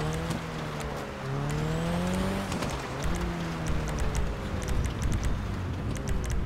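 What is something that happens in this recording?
A car engine hums steadily, its pitch rising and falling as it drives.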